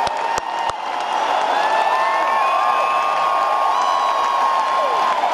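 An electric guitar plays loud, long bending notes through amplifiers in a large echoing hall.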